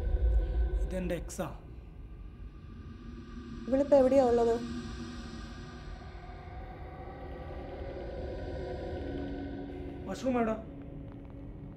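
A man speaks in short, tense phrases nearby.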